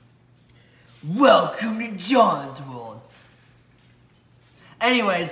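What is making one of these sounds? A teenage boy speaks up close with animation.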